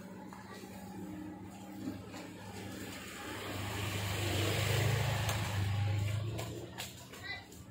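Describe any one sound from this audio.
A motorbike engine approaches, passes close by and fades away.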